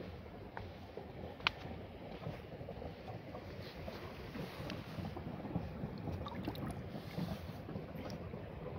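A river flows and laps gently.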